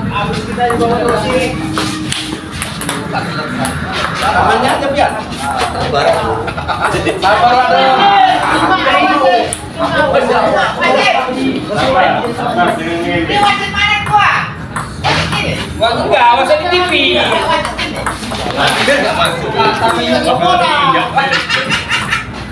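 Several men talk and shout nearby.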